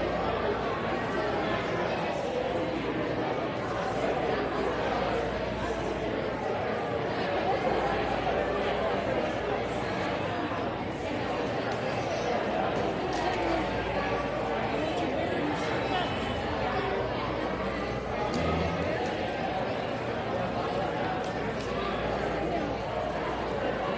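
An acoustic guitar strums.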